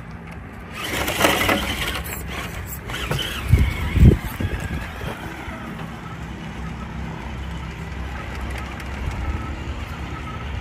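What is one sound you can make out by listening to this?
A small electric motor whirs as a toy truck climbs over rocks.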